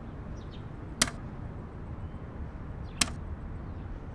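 A plastic button clicks as it is pressed.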